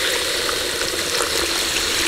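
Water pours and splashes into a pot.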